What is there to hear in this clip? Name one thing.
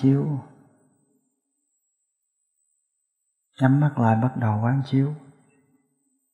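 A middle-aged man speaks calmly and slowly, close by.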